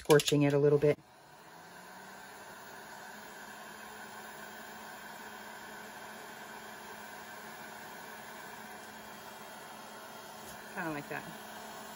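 A hair dryer blows with a steady, whirring hum.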